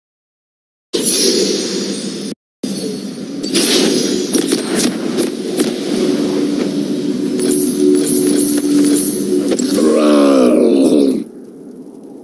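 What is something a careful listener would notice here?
Game sound effects whoosh and chime over a steady musical drone.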